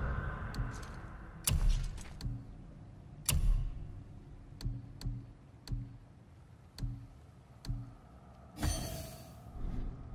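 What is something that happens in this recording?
Menu clicks and soft whooshes sound as selections change.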